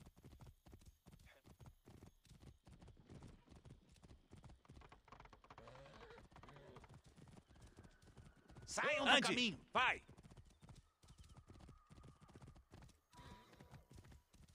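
Horse hooves gallop in a quick, steady rhythm.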